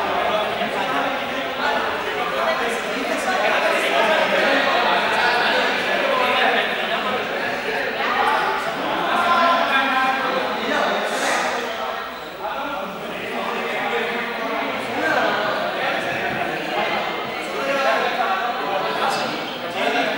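A group of young people talk and call out across a large echoing hall.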